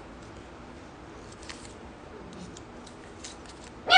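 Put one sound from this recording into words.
Paper crinkles as a woman unfolds a slip.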